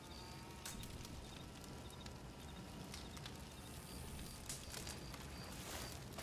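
A campfire crackles and pops steadily.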